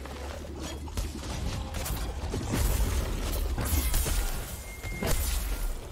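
Blades clash and strike with sharp metallic hits.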